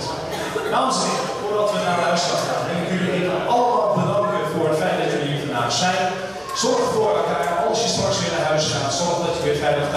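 A man announces loudly through a microphone and loudspeakers.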